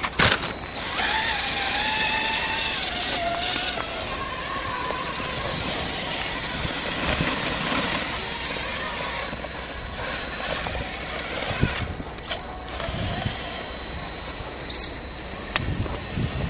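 A small electric motor whines and changes pitch as a toy truck crawls.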